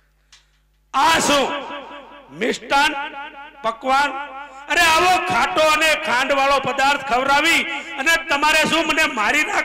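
A man sings with animation through a loudspeaker.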